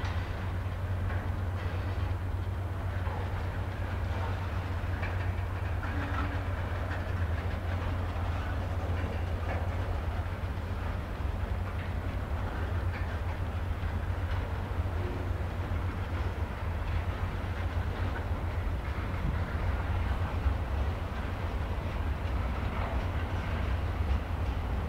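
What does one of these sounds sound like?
A long freight train rumbles and clatters steadily past on the tracks.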